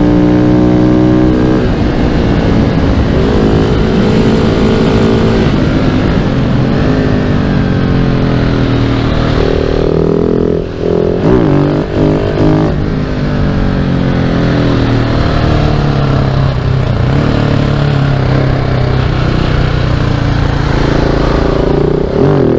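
A single-cylinder supermoto motorcycle accelerates and shifts through its gears.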